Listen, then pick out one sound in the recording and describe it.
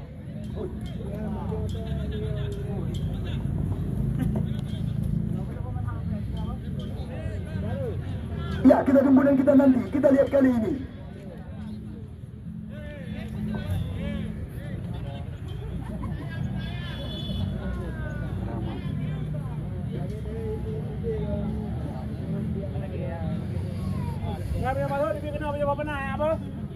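A crowd of spectators chatters and shouts outdoors at a distance.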